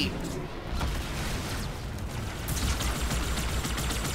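An energy weapon fires with sharp bursts.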